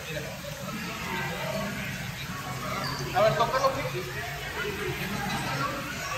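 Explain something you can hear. Water gently splashes and trickles over rocks.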